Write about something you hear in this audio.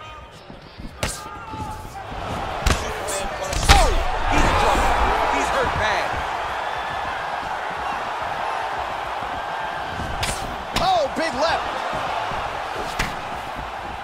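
Blows land with sharp thuds.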